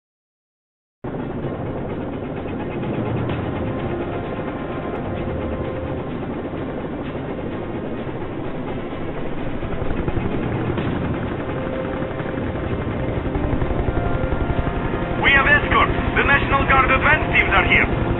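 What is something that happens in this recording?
An aircraft engine drones steadily from close by, heard from inside the cabin.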